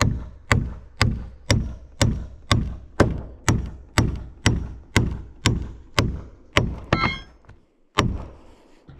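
A hammer drives a nail into wood with sharp, evenly spaced blows.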